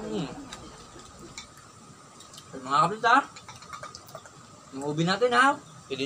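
A drink fizzes as it is poured into a glass.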